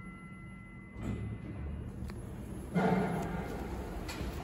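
Elevator doors slide open with a rumble.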